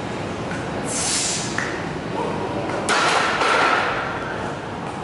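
Heavy weight plates clank as a barbell is set back onto a metal rack.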